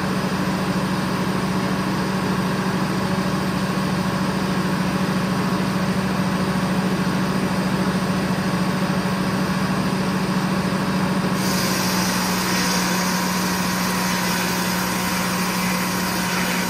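A sawmill engine drones loudly and steadily.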